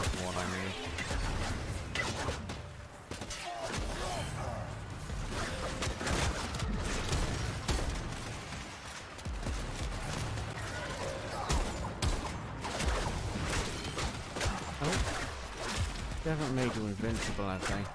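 Video game combat sounds clash and explode.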